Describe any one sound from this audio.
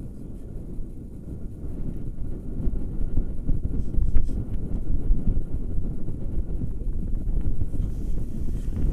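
Wind rumbles loudly across a microphone outdoors.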